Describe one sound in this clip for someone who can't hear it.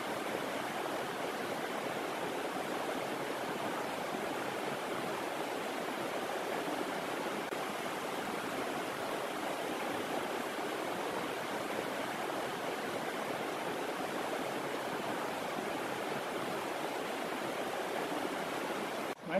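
A river rushes loudly over rocks outdoors.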